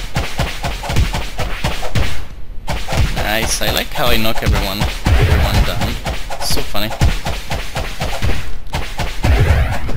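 Blows thud and clash in a fight with creatures.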